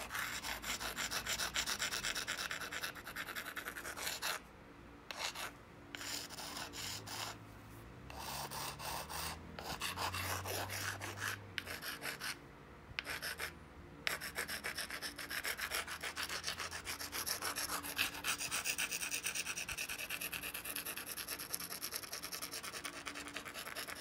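An antler tool scrapes and clicks against a stone blade in rapid strokes.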